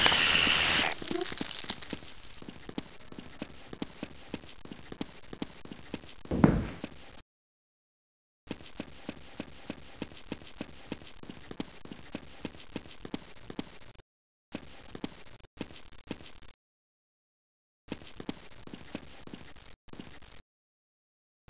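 Footsteps tread at a steady, brisk pace across hard floors.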